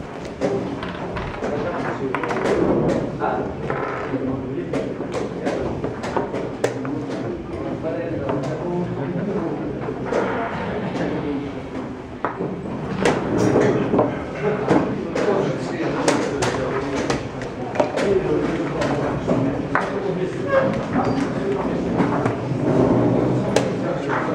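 Chess pieces tap on a wooden board.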